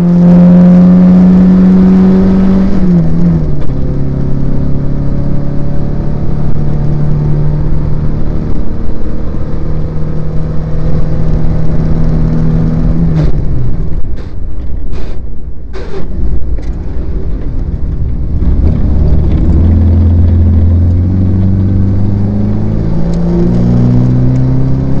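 Wind rushes past an open car.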